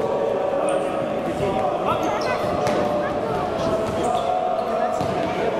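Sneakers squeak on a wooden indoor court in an echoing hall.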